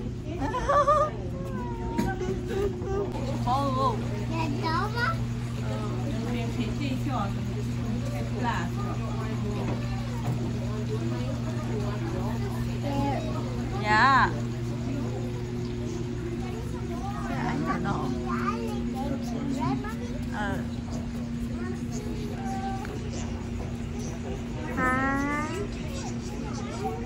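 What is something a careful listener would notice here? Young children talk and squeal close by.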